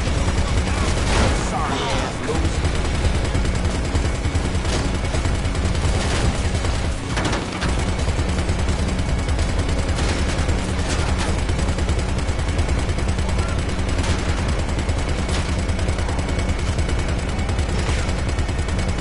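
A machine gun fires bursts of shots.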